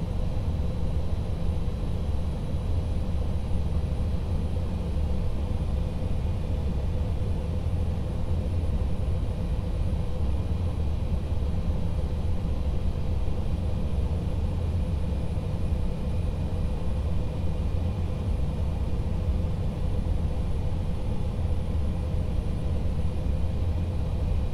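A jet airliner's engines roar steadily on approach, heard from inside the cabin.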